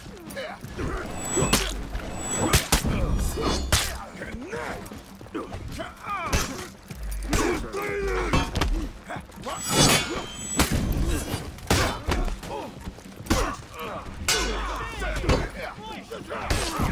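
Metal blades clash and clang again and again.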